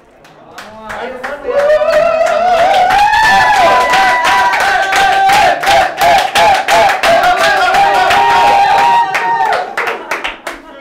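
A group of people cheer and sing loudly together.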